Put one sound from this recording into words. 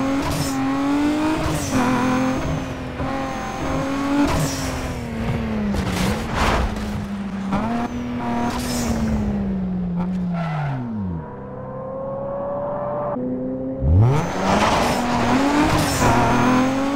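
A car engine roars and revs up and down through gear changes.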